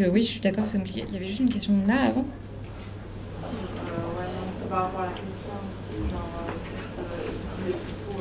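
A young woman speaks calmly into a microphone, her voice carried through a loudspeaker in an echoing room.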